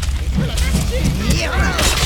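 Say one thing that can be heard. A sword swings and clangs in a fight.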